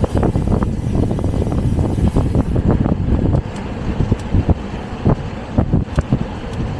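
Wind buffets loudly against the microphone while riding outdoors.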